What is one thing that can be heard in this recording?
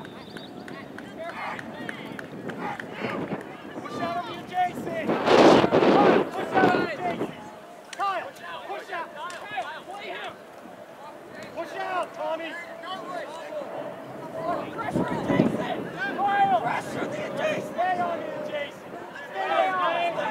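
Young players and coaches shout and call out across an open field.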